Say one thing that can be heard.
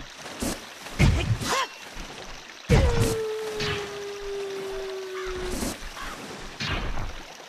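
A sword swings and strikes with sharp hits.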